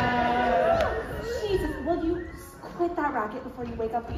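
Young voices talk and cheer excitedly after the song.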